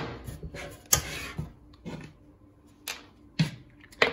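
A metal handle and knobs clatter onto a wooden board.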